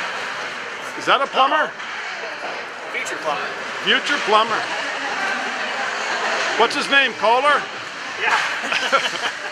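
A man talks cheerfully close by.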